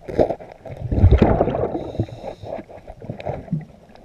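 Air bubbles burble and rush underwater.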